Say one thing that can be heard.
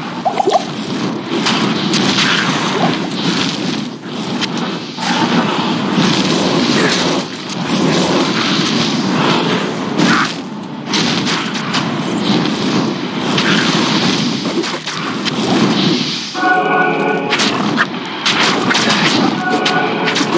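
Fiery spells burst and crackle in quick succession.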